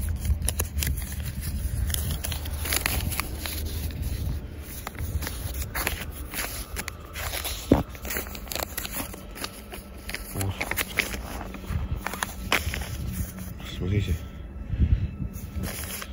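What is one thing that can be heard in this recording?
Paper crinkles in a hand.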